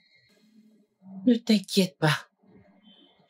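A woman speaks loudly and forcefully nearby.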